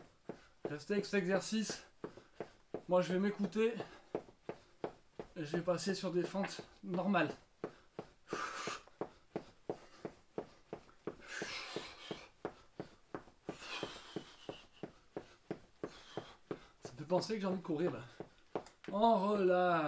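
Feet tap quickly and steadily on a floor.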